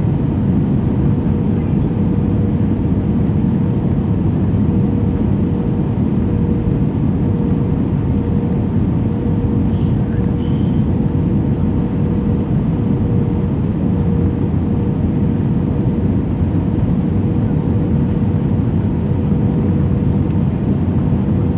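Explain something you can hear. Jet engines roar steadily with a low, loud rumble inside an aircraft cabin.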